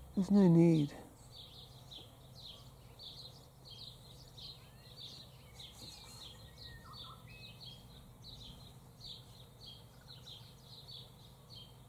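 Wind rustles softly through the trees outdoors.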